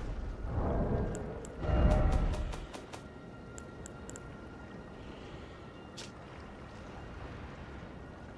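Soft clicks tick quickly as a game menu is scrolled.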